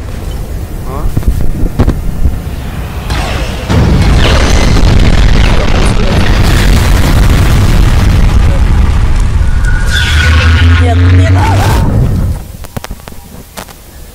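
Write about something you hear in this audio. Television static hisses and crackles.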